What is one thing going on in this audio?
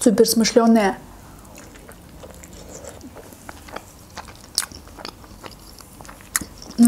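A young woman chews food with soft wet crunches close to a microphone.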